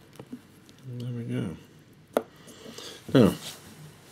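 A watch is set down on a wooden table with a light knock.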